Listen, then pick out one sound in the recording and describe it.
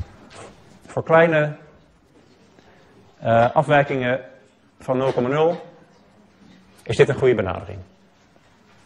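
A man speaks calmly and clearly, as if lecturing.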